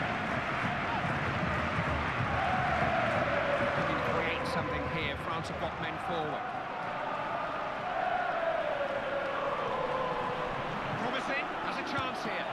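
A football is kicked several times.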